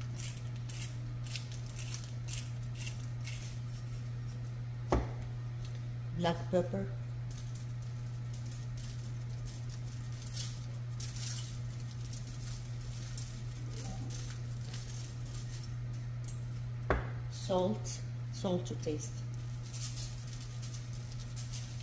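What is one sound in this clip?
Spices rattle as a shaker jar is shaken over food.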